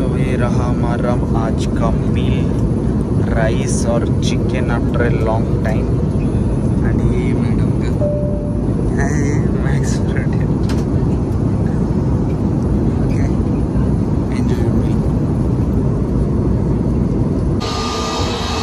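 An airplane cabin hums with a loud, steady low drone.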